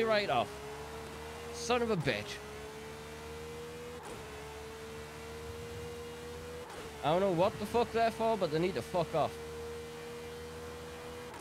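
A sports car engine drones steadily at high speed.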